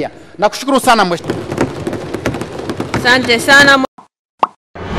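A man speaks formally into a microphone.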